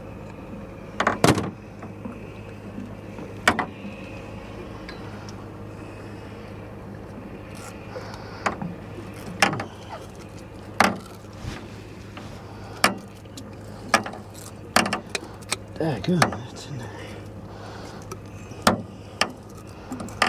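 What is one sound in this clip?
Sharp clicks and knocks sound in a small boat.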